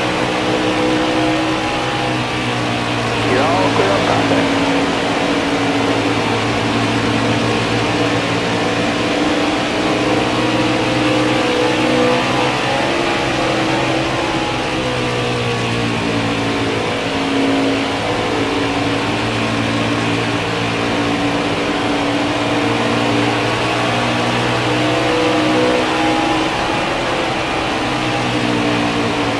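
A racing truck engine roars steadily at high speed.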